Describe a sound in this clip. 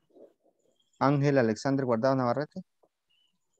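A man speaks clearly over an online call.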